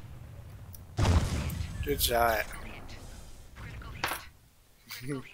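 A large robot explodes with a loud blast and debris clattering.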